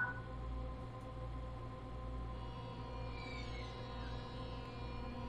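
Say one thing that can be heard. An electric train's motors hum steadily.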